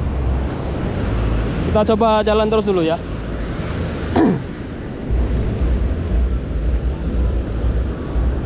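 Waves wash up and break on the shore.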